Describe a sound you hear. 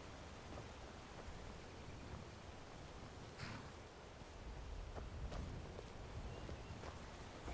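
Footsteps thud on stone paving at a brisk walk.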